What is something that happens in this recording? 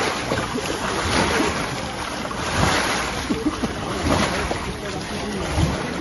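Water splashes as a person thrashes in a pool.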